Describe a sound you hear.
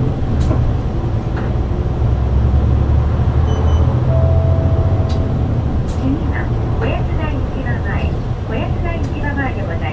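A bus engine rumbles low and steady from inside the cab.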